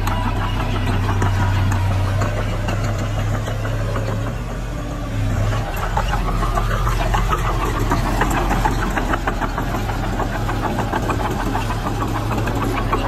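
A bulldozer engine rumbles steadily.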